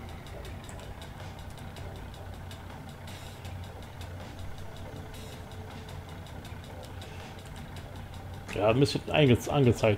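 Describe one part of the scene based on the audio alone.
A truck engine hums low and steady.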